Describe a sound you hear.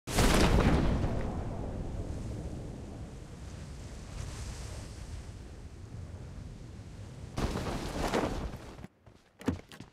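Wind rushes loudly past a parachuting game character.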